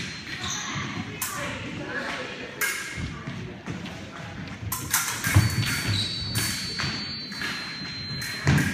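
Fencers' shoes squeak and stamp on a wooden floor.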